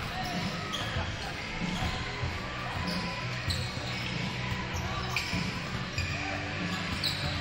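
Basketballs bounce on a wooden court.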